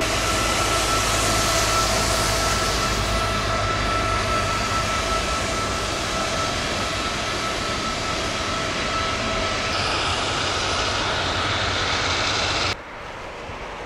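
Jet engines whine and roar loudly as a large plane taxis past.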